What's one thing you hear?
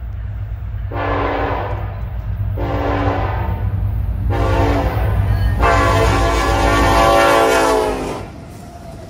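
A diesel locomotive rumbles heavily as it approaches and passes close by.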